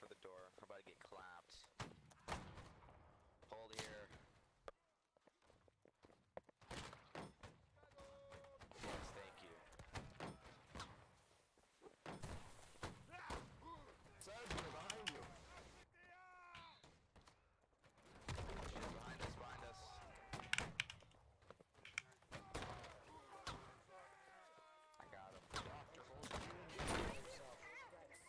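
Muskets fire in sharp bangs.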